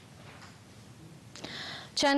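A young woman reads out the news calmly into a microphone.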